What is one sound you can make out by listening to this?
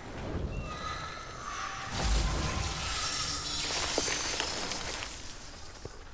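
Sparks fizz and crackle.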